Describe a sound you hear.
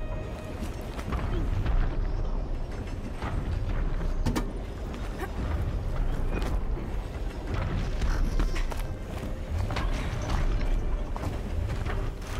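Footsteps and hands clank on metal.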